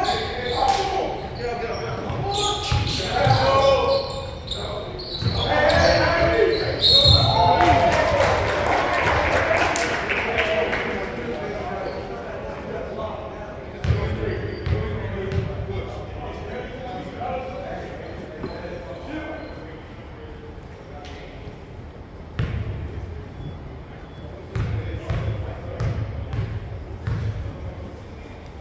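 A crowd of people chatter and cheer in a large echoing gym.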